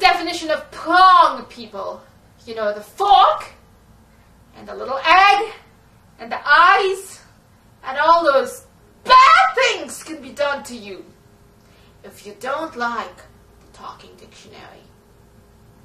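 A young woman sings and speaks with animation close by, in bursts.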